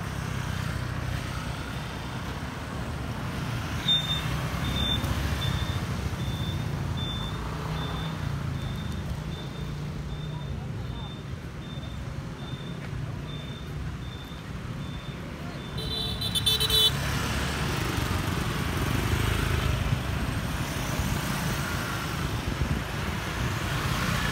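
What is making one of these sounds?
Motorbike engines hum as scooters ride past.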